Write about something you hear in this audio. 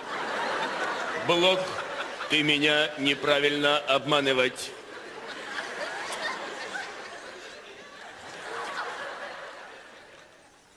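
An audience laughs and cheers in a large hall.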